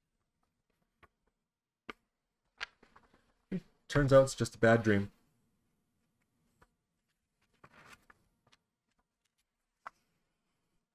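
Paper pages rustle and turn.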